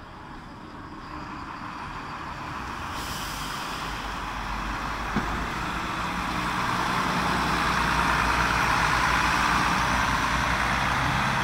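A bus engine rumbles loudly as a coach drives past close by.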